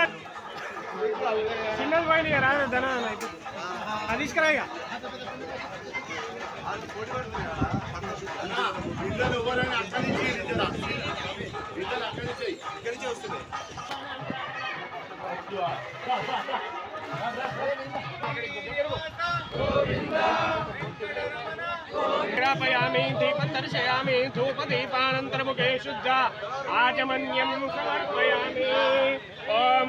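A crowd of men and women talks and murmurs outdoors nearby.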